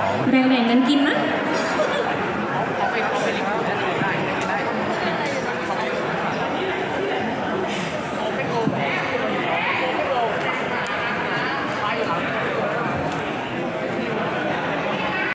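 A crowd chatters loudly around a large indoor hall.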